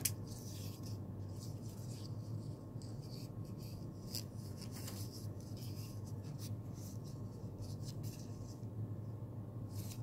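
A plastic headband clicks and creaks softly as hands bend it.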